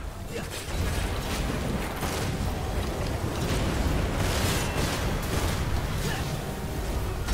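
A huge creature's body rumbles and thrashes with heavy low booms.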